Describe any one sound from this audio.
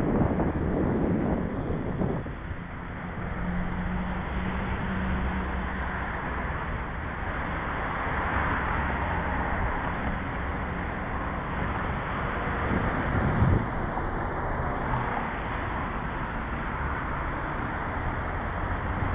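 Wind rushes over the microphone while moving outdoors.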